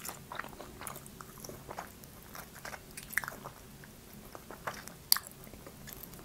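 A young woman licks and sucks her fingers with wet mouth sounds close to a microphone.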